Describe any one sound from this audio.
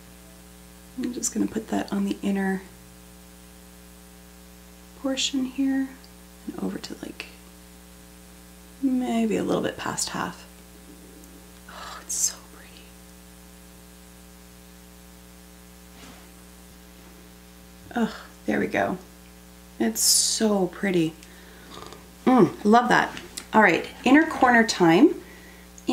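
A woman talks calmly and close by, pausing now and then.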